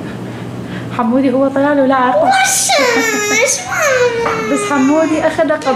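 A young boy talks excitedly up close.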